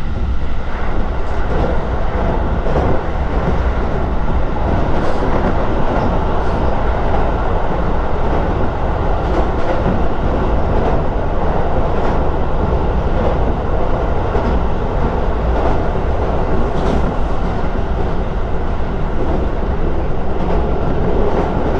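A train clatters loudly as it crosses a metal bridge.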